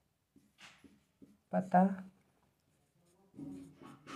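A marker squeaks on a whiteboard.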